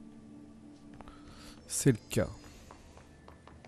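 Footsteps tap on a hard floor in a large echoing hall.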